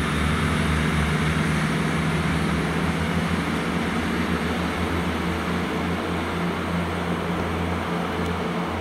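A diesel train rumbles steadily as it pulls slowly in.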